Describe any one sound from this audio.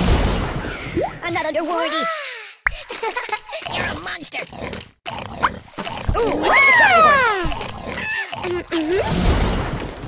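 Squeaky cartoon sound effects chirp and swoop in pitch.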